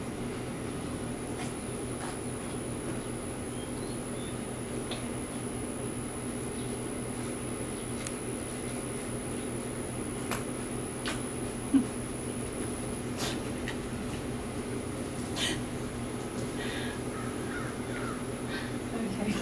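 A deer munches food close by.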